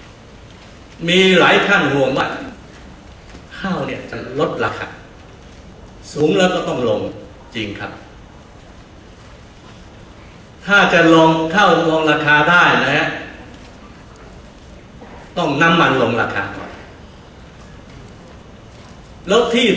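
An elderly man speaks calmly in short phrases through a microphone, with pauses between them.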